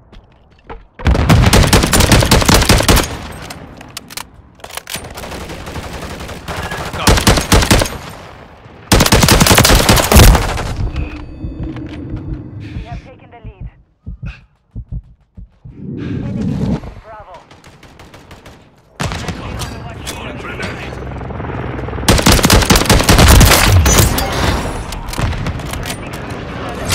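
Rapid gunfire bursts loudly, close by.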